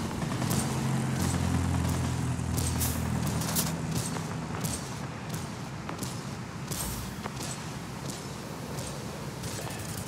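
Aircraft machine guns fire in short bursts.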